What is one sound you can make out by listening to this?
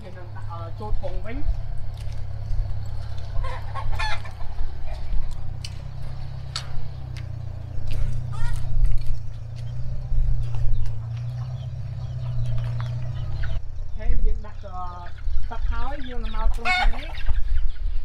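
A rooster crows nearby.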